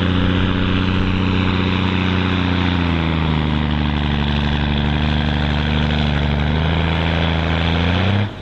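A heavy truck engine roars loudly under strain, its pitch dipping and rising.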